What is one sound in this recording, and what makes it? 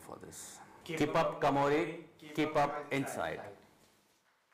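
A man speaks calmly through a loudspeaker.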